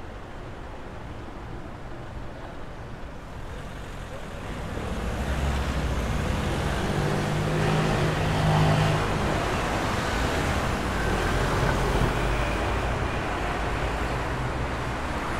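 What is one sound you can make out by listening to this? City traffic hums and rumbles steadily outdoors.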